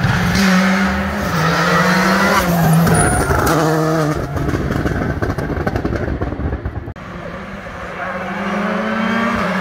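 A racing car engine roars at high revs and shifts up through the gears as the car speeds past.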